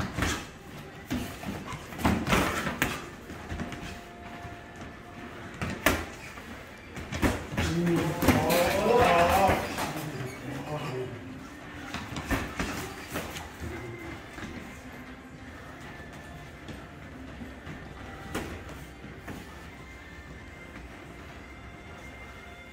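Sneakers squeak and shuffle on a canvas floor.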